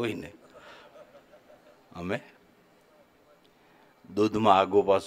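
An elderly man speaks calmly into a microphone, heard through a loudspeaker, with pauses.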